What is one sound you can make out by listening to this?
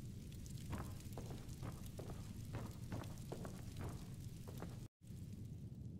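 Armored footsteps thud on a wooden floor.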